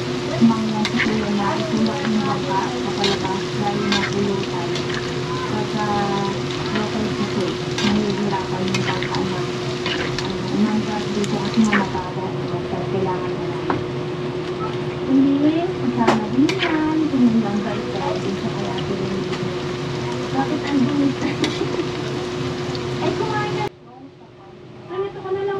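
Food sizzles and bubbles steadily in hot oil.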